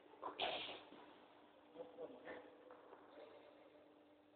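Sneakers squeak and scuff on a hard court floor in an echoing hall.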